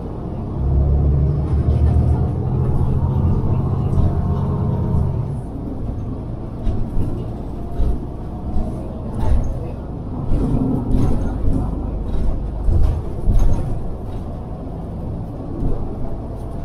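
A car engine hums steadily as it drives along a road.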